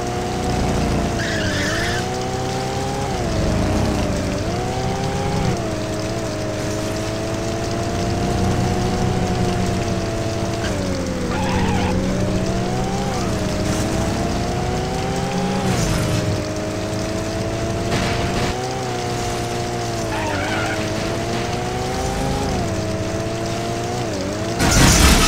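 A V8 muscle car engine revs up and down.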